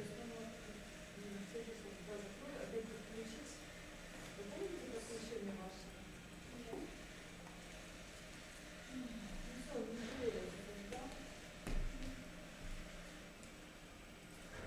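A young girl speaks quietly.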